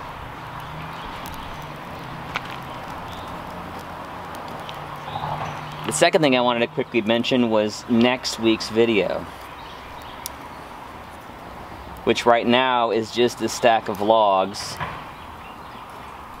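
A small wood fire crackles softly.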